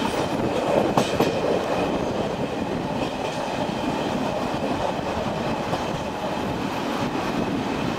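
Wheels clatter over rail joints and points.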